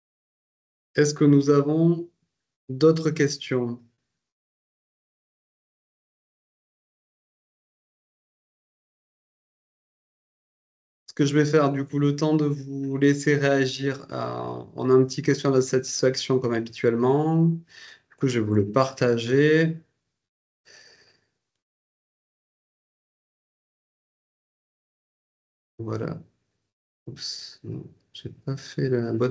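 A middle-aged man speaks calmly through an online call, with pauses.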